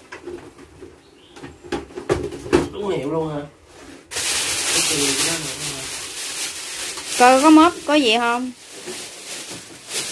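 A plastic casing rattles and knocks as it is handled.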